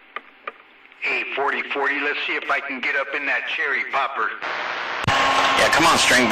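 A crackling voice comes through a radio loudspeaker.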